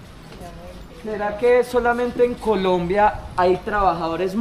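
A young man sings close by.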